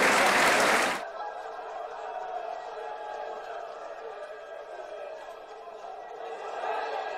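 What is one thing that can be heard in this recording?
A small crowd murmurs faintly in an open stadium.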